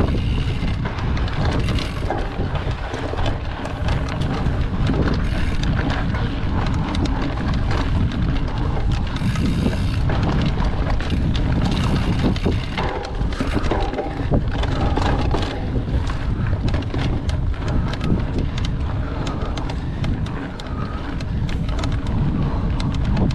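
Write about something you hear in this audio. A bicycle frame and chain rattle over bumps.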